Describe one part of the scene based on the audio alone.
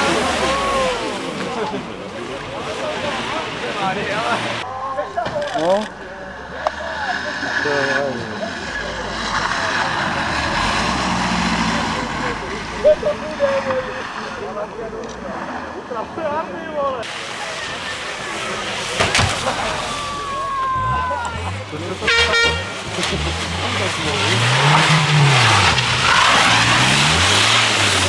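A car engine revs hard and whines as the car slides through bends.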